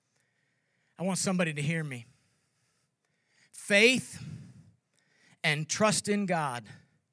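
An older man speaks with emphasis through a microphone, pausing between phrases.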